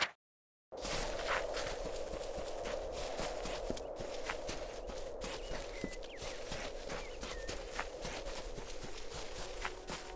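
Footsteps run quickly through dry grass.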